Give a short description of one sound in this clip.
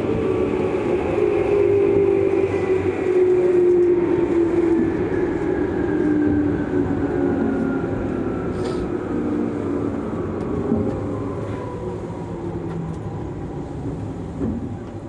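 A train's motor whines and falls in pitch as the train slows down.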